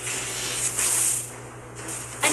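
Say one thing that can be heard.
Weapons clash and magic zaps crackle in a fight.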